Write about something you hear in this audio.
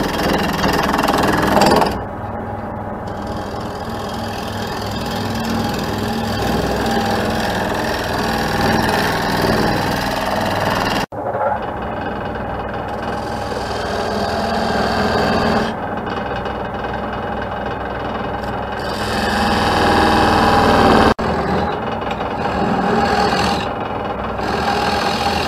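A gouge scrapes and shaves against spinning wood.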